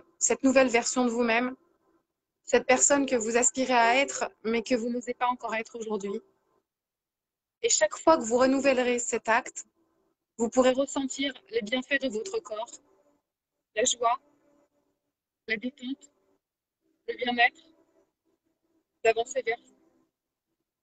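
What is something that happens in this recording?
A woman speaks with animation over an online call, in bursts with pauses.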